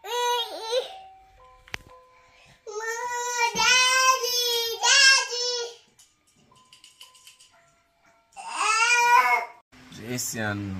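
A baby mobile plays a bright, tinkling lullaby tune.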